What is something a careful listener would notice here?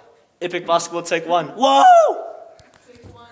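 A teenage boy talks excitedly close by.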